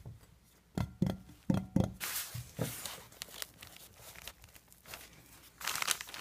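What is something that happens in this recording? Fingers tap on a plastic toy.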